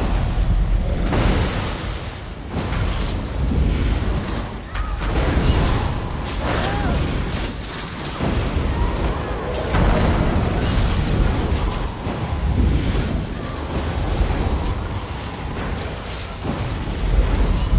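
Magic spells crackle and blast in a fantasy battle.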